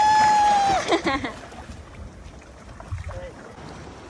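A swimmer splashes through the water.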